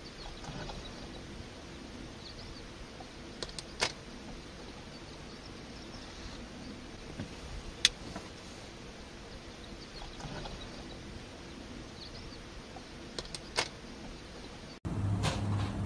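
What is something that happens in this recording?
Young owls chirp softly outdoors.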